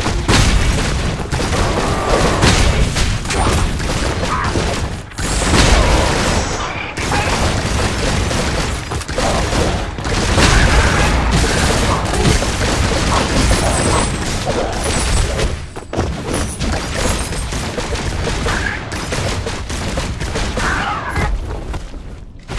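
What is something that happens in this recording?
Sword slashes and magic blasts clash rapidly with loud impacts.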